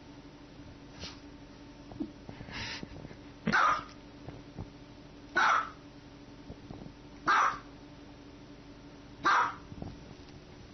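A small dog barks sharply, close by, several times.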